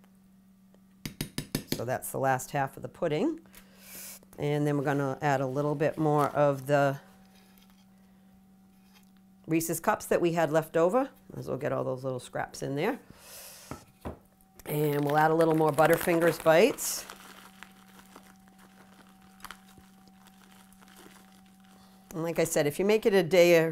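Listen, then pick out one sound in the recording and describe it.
A woman talks calmly and close to a microphone, in bursts with pauses.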